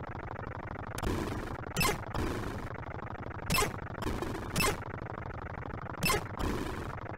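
Sharp electronic blasts and hissing bursts of noise go off now and then.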